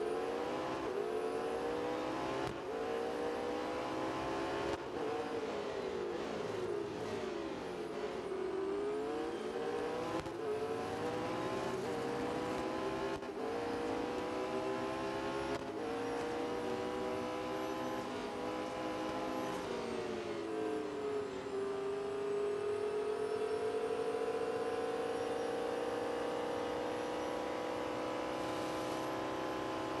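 A race car engine roars, revving up through the gears and dropping in pitch at each shift.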